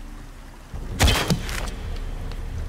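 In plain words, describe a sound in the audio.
An arrow is loosed from a bow with a sharp snap.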